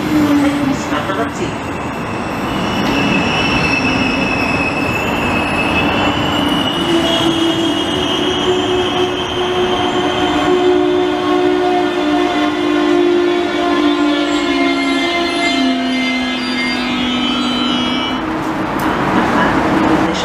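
A train rolls past close by with a loud rumble and clatter.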